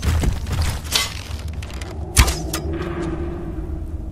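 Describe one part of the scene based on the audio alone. A bowstring twangs as an arrow is loosed.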